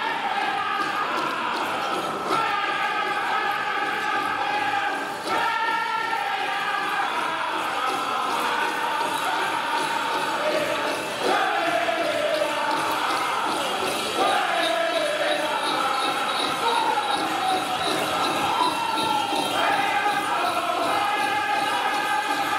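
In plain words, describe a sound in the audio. Bells on dancers' legs jingle as the dancers stomp and hop.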